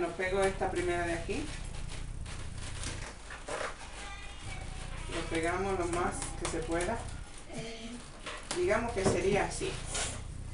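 Rubber balloons squeak and rub as they are pressed together.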